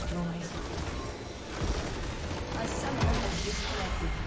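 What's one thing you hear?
Game spell effects crackle and boom during a battle.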